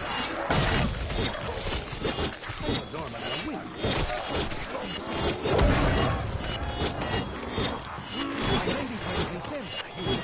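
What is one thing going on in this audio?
Energy blasts zap and crackle.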